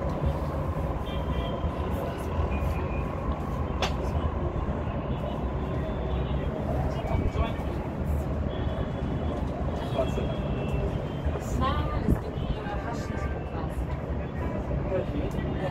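City traffic drones on a busy road, heard from high above.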